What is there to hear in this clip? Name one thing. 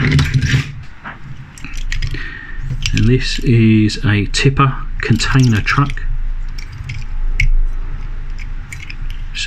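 Small metal toy parts click and rattle as they are handled close by.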